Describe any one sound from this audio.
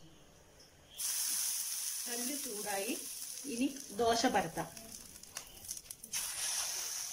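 Water sizzles and hisses on a hot pan.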